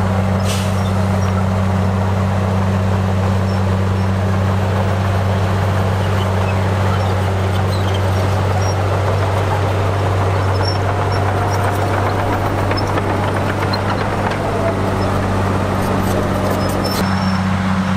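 A bulldozer's diesel engine rumbles steadily.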